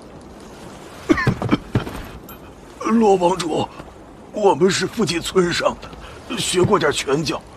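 An elderly man speaks with a gruff voice.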